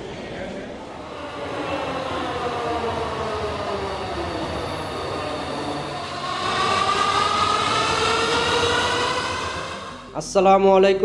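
A metro train's motor whines as the train pulls in and slows.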